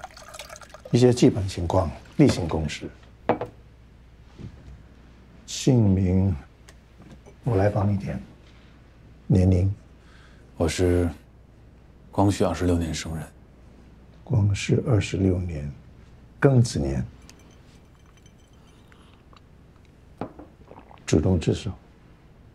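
A middle-aged man speaks calmly and asks questions.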